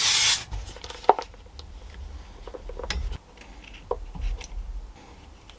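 Plastic parts click and knock together.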